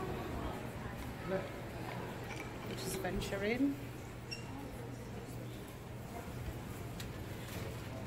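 Shoppers murmur and move about in the background.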